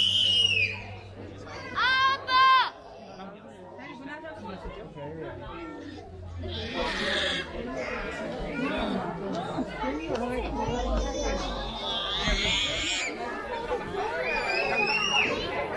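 A crowd of people murmurs nearby.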